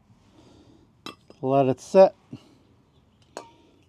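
A metal brake caliper clanks onto the pavement.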